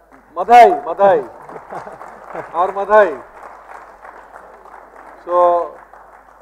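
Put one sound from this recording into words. An audience laughs and murmurs.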